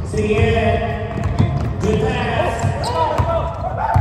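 A basketball thumps on the floor.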